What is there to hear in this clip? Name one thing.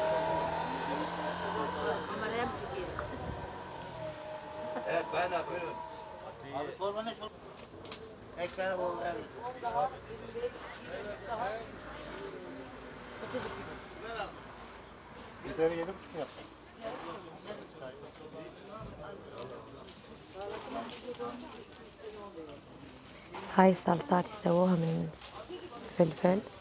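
Men and women chatter nearby in a busy outdoor crowd.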